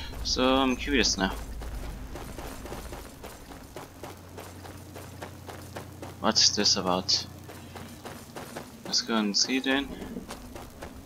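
Footsteps crunch over gravel.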